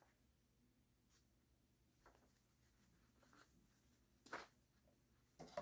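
Yarn rustles softly as hands handle a crocheted piece.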